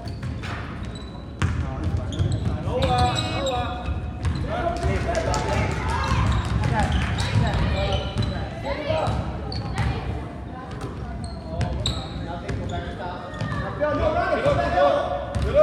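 A crowd of children and adults shouts and cheers in a large echoing gym.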